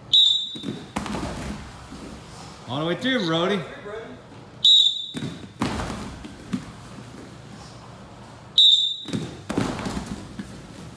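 A young wrestler drops onto a padded mat with soft thuds.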